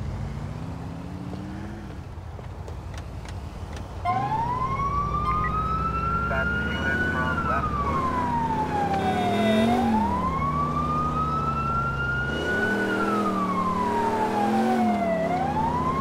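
A van engine revs and roars as it drives off.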